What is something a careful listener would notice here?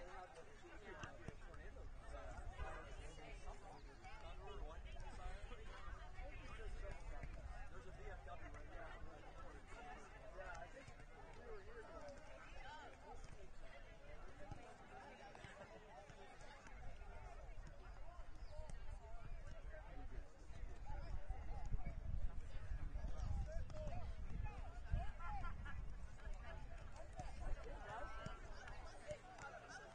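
Players shout to one another across a field outdoors, far off.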